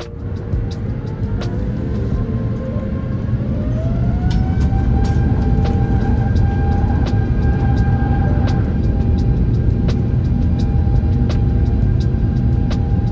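A jet engine roars loudly close by, its whine rising as the plane speeds up.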